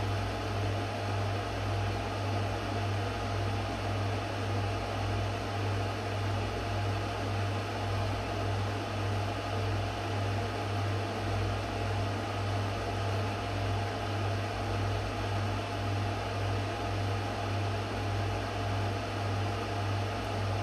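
A power inverter hums steadily with a low electrical buzz.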